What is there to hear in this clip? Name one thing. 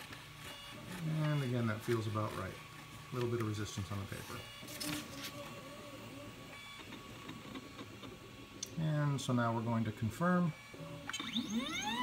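A printer's motors whir and whine, rising and falling in pitch.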